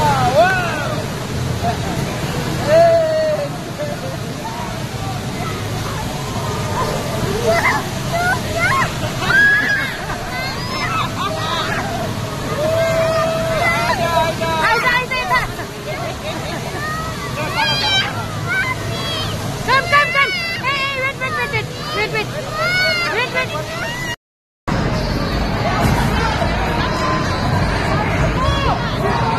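Young children shout and laugh excitedly nearby.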